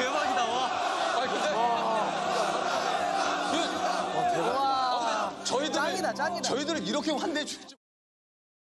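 A crowd of young men and women shouts and cheers loudly.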